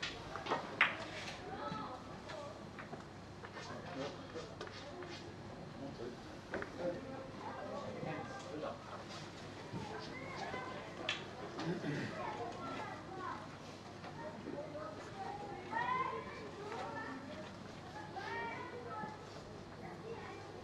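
Men talk quietly in the background of a large room.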